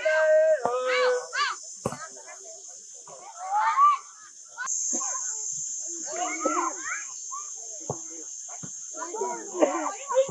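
Children shout and call out across an outdoor field.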